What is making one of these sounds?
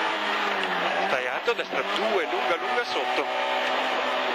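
A rally car's engine blips its throttle as the driver downshifts for a bend.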